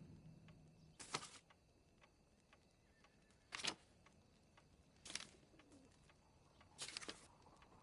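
Paper pages of a catalogue rustle as they are turned.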